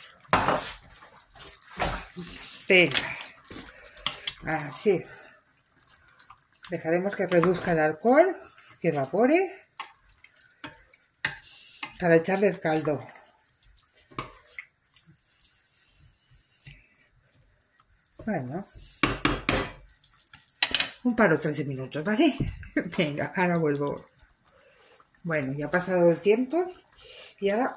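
A stew bubbles and simmers in a pot.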